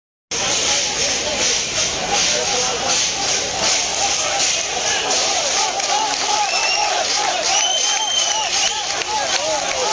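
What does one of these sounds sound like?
A large crowd of men shouts and chants loudly outdoors.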